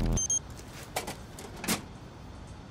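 A small metal panel door swings shut with a click.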